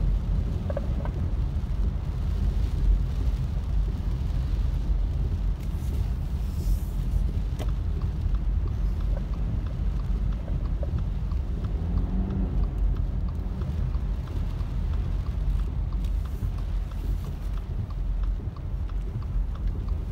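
Windscreen wipers swish across the glass.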